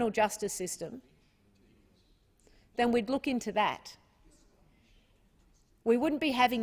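A woman speaks calmly into a microphone in a large room, pausing between phrases.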